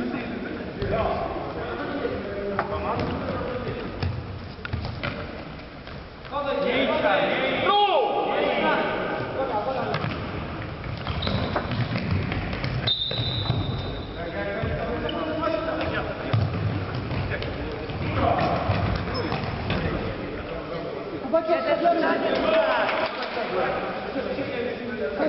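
Players' sneakers squeak on a hard indoor floor.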